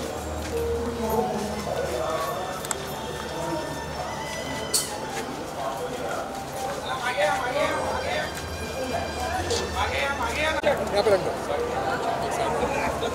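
A crowd of people chatter and murmur nearby.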